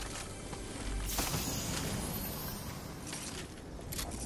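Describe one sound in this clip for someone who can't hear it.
A treasure chest bursts open with a bright shimmering jingle.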